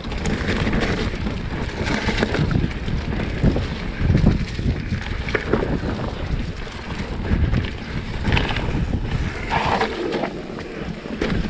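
Bicycle tyres rumble and crunch over a rough dirt trail.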